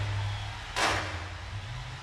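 A car thuds hard over a bump.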